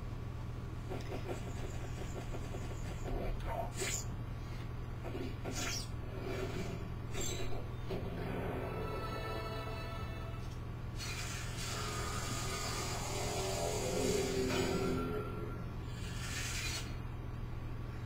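Whooshing sound effects play through a television speaker.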